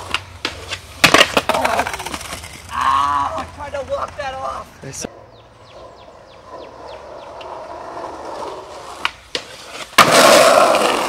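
A skateboard deck clacks hard against the ground.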